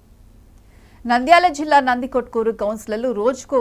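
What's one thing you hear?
A young woman speaks clearly into a microphone, reading out the news.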